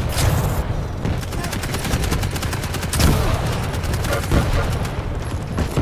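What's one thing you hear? A gun fires rapidly in quick bursts.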